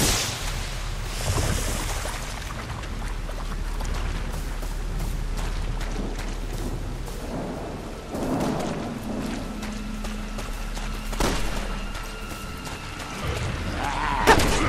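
Footsteps tread through wet grass.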